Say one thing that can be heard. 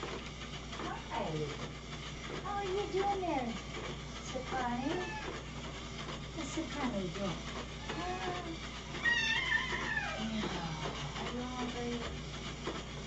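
Cats meow repeatedly nearby.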